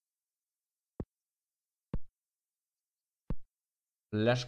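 Short soft clicks sound as game menus open.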